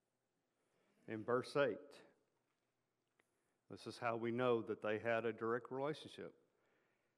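A middle-aged man speaks calmly into a microphone in a large, echoing room.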